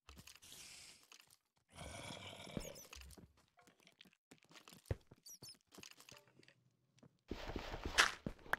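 Stone blocks crunch and crumble as they are mined.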